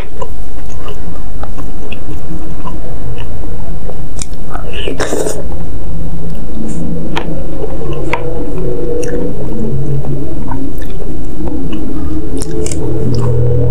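A young woman chews and slurps food loudly, close to a microphone.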